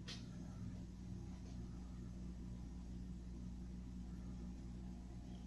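Hands handle food softly.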